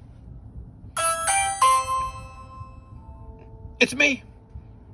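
A doorbell chimes a ringing melody.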